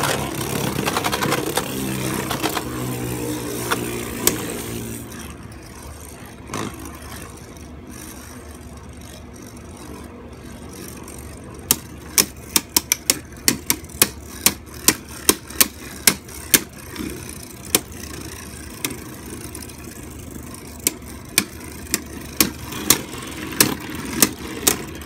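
Two spinning tops whir steadily in a plastic bowl.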